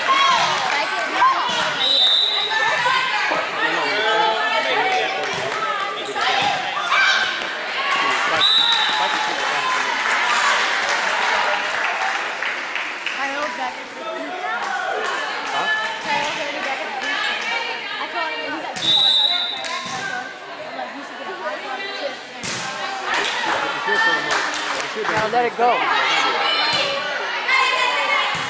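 Young women and girls chatter and call out throughout in a large echoing gym.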